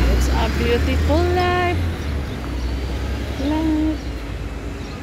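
A van engine rumbles as the van drives past close by.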